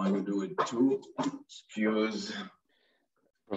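An older man talks calmly over an online call.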